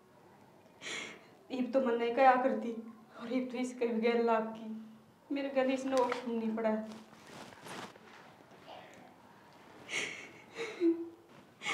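A woman speaks nearby in a pained, crying voice.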